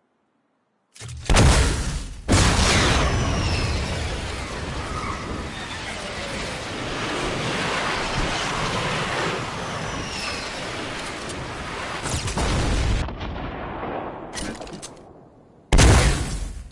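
A sudden booming blast goes off.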